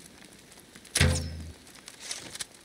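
A crossbow fires with a sharp snap.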